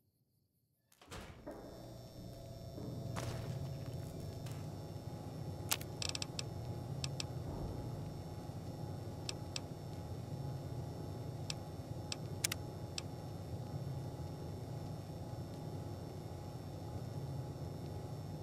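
A low, steady hum drones on.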